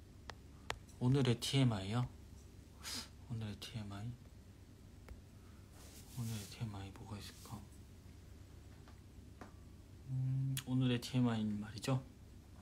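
A young man speaks calmly and softly into a phone microphone, pausing often.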